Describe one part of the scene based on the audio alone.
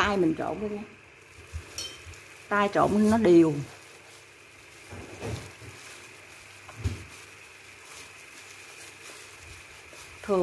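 Gloved fingers softly squish and rub a powdery mixture in a bowl.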